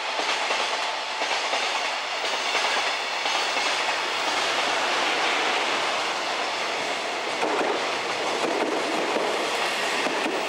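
A passenger train approaches and passes close by with rattling wheels.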